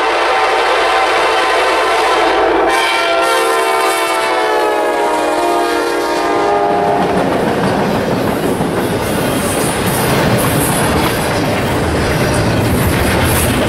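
A freight train rumbles and clatters past on the tracks.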